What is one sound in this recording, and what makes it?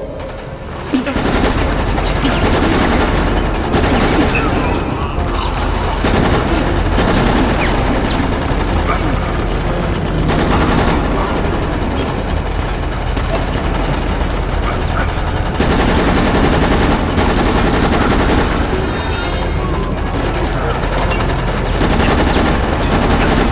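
Gunfire rattles in bursts.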